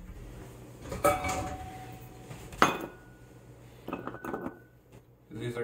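A metal bowl scrapes and clanks on a stovetop.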